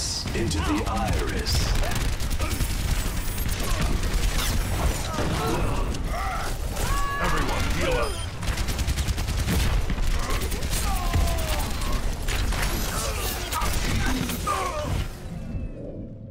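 Rapid gunfire crackles close by.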